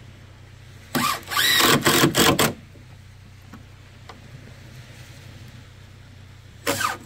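A cordless impact driver drives screws into wood.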